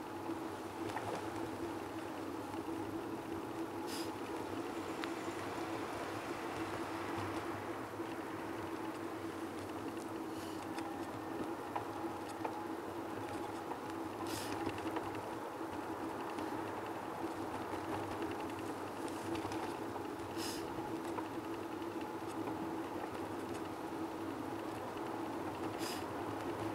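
Bicycle tyres hum steadily over paving stones.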